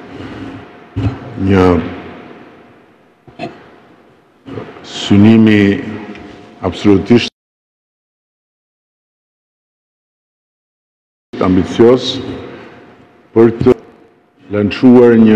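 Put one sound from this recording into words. An older man gives a speech through a microphone, his voice echoing in a large hall.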